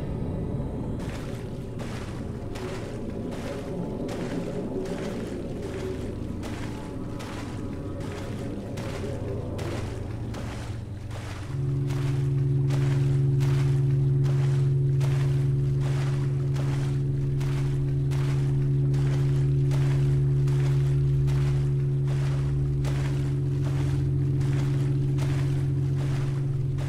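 Footsteps splash steadily through shallow water.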